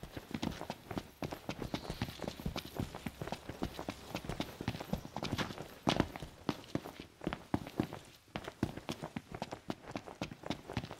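Quick footsteps run over dirt and pavement.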